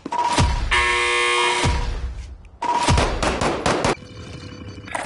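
Electronic menu tones tick rapidly as a score counts up.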